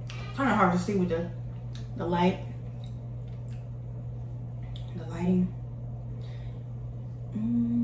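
A young woman chews food close to a microphone.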